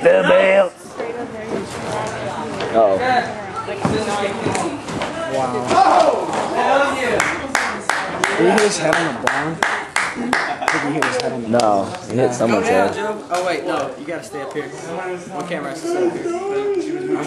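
Young men shout and cheer excitedly nearby.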